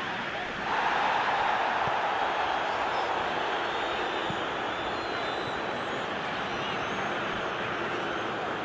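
A large crowd cheers steadily, swelling loudly at first and then easing.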